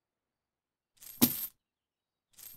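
A door opens with a knock.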